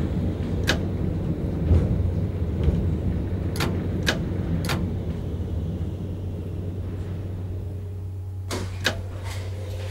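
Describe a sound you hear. Tram wheels click over rail joints.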